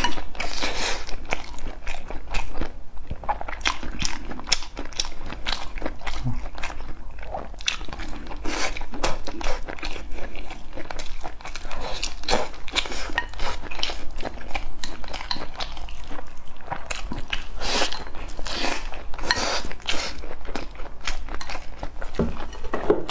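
A young man slurps food up close.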